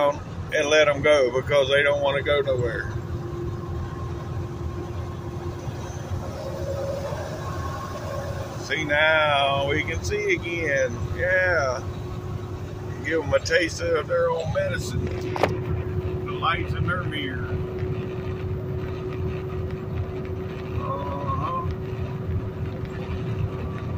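A truck engine rumbles steadily while driving on a highway.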